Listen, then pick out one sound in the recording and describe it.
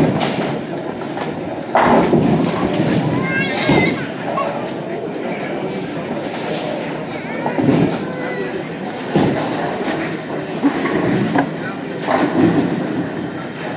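Bowling balls rumble down wooden lanes in a large echoing hall.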